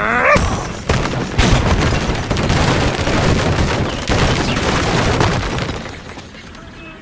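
Wooden blocks crash and clatter as towers collapse.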